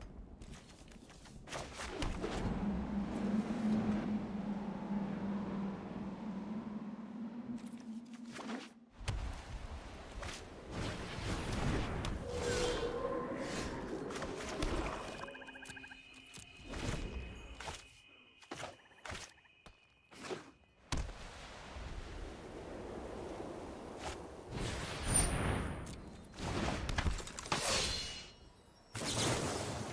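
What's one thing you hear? Playing cards land on a table with soft thuds and chimes.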